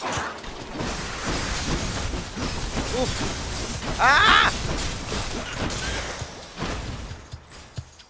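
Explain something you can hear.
Loud video game combat sounds crash and blast.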